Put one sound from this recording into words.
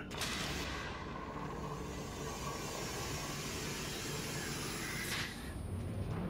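A blast roars and hisses, then dies away.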